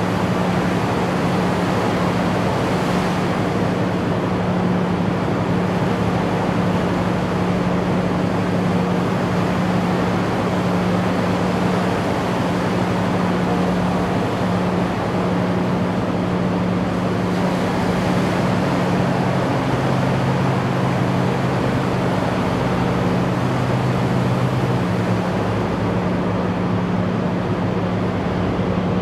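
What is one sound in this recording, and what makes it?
Water churns and splashes behind a diesel amphibious assault vehicle.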